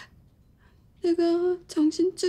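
A young woman cries out loudly in distress.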